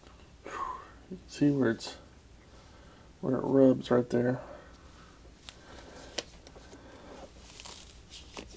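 Fingers rub and tug softly at a sock on a foot.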